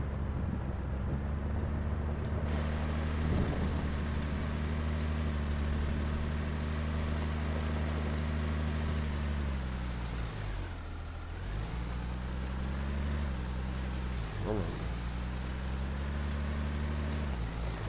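A tractor engine rumbles steadily, dropping in pitch as it slows and rising again as it pulls away.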